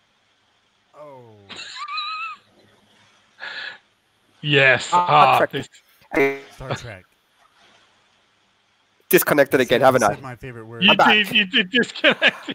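Men talk and laugh with animation over an online call.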